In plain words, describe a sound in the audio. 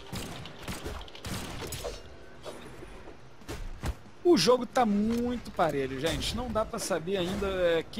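Quick thuds and swooshes of fighting blows sound in bursts.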